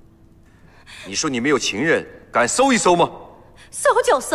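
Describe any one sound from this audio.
A man speaks accusingly.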